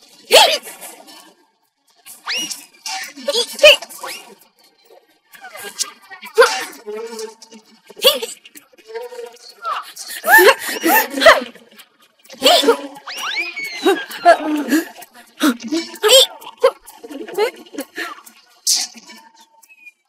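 Several cartoon characters chatter in high, animated voices.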